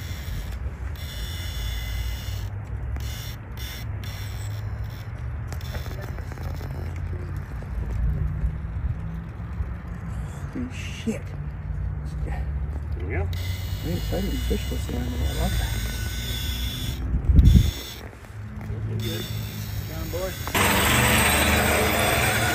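A small electric motor whines as a toy truck crawls over rock.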